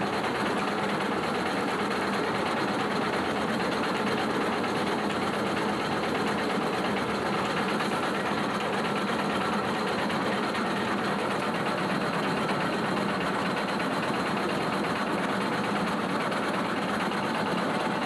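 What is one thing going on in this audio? A roller mill rattles and hums steadily.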